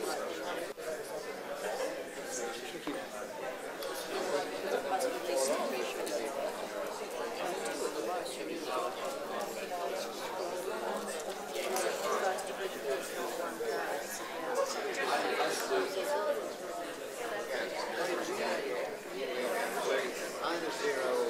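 A room full of people chatter and murmur at once.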